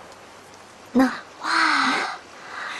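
Young women laugh brightly nearby.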